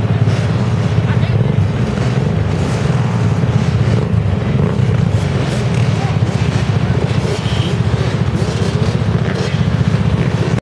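A crowd of people talks in the background outdoors.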